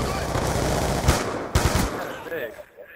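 A rifle fires sharp, loud shots.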